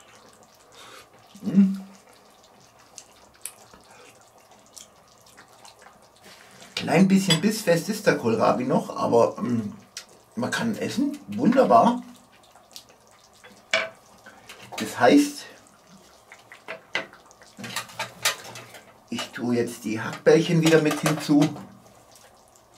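A pot of stew bubbles gently over a fire.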